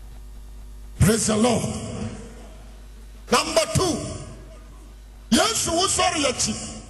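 A man preaches forcefully into a microphone, his voice ringing through an echoing hall.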